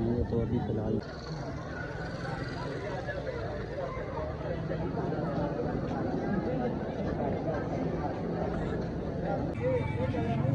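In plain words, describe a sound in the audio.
A crowd chatters outdoors in a busy street.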